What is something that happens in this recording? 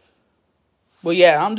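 A young man speaks loudly and suddenly, very close by.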